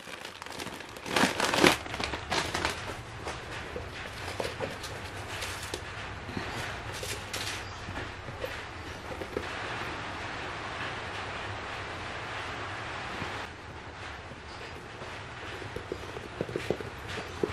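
Leather bag material rustles and creaks as hands handle it.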